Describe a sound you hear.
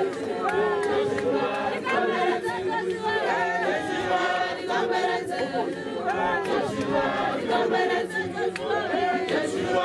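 People clap their hands in rhythm.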